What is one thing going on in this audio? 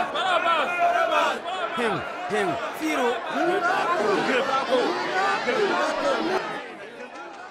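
A crowd of men shouts loudly nearby.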